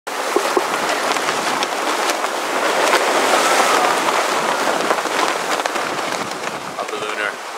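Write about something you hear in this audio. Waves splash against a sailing boat's hull.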